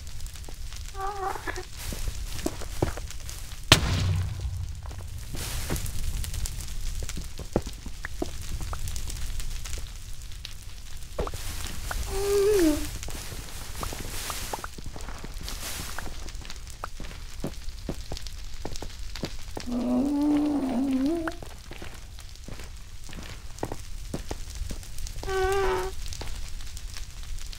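Blocks crunch and break under quick pickaxe blows.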